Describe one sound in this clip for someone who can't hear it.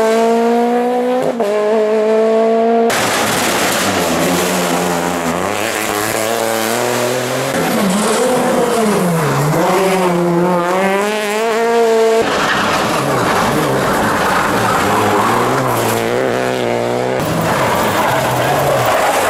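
A rally car engine roars loudly, revving up and down.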